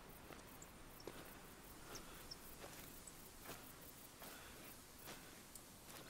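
Footsteps crunch steadily over rough ground.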